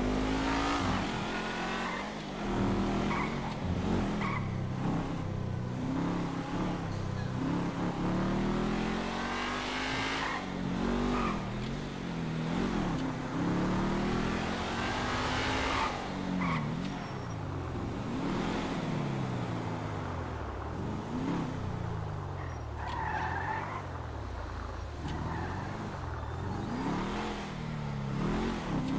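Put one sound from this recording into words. Tyres hiss on the road.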